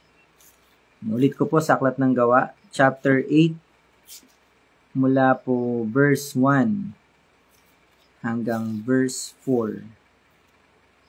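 A man speaks calmly close to the microphone, in short phrases with pauses.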